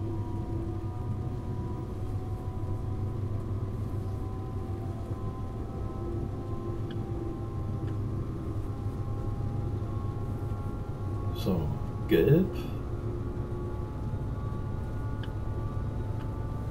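A train's motor hums steadily as it rolls along.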